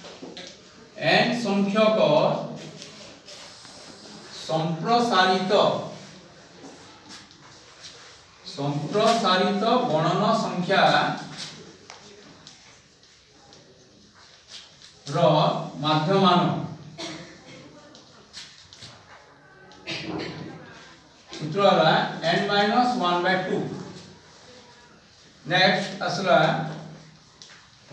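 A man speaks calmly and slowly, in short phrases, close by.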